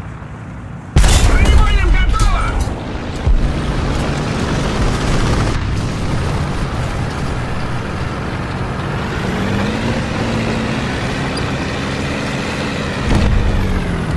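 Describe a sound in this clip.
A tank cannon fires with a loud boom and echoes.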